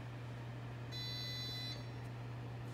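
A refrigerant recovery machine beeps.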